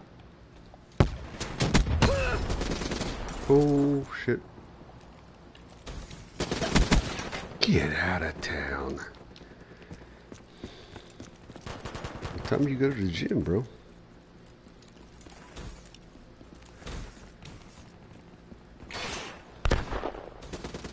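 Gunfire crackles in short, sharp bursts.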